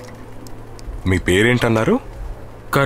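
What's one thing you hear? A man speaks loudly and with feeling close by.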